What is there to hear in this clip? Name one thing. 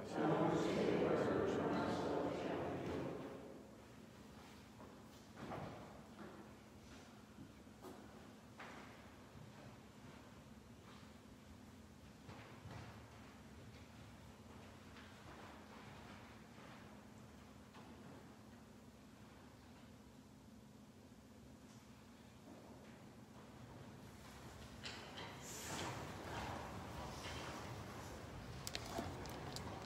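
A man speaks slowly and solemnly through a microphone in a large echoing hall.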